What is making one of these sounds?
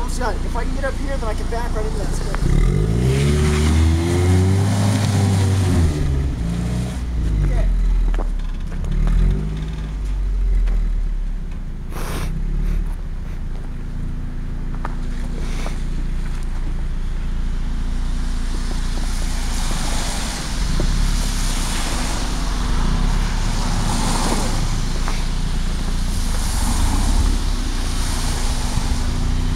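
A car engine idles and revs with a low rumble.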